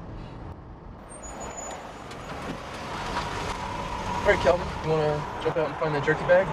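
A car approaches along a road, its engine growing louder.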